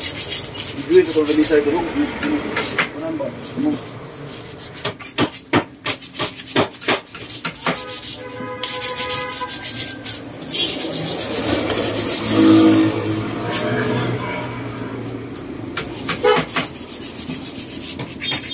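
Rattan strips creak and rustle as hands weave them into a chair.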